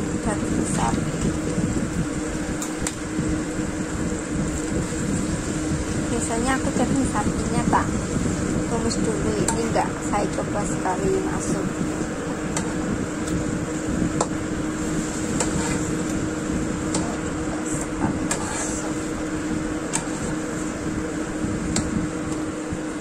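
A spatula scrapes and clacks against a pan as food is stirred.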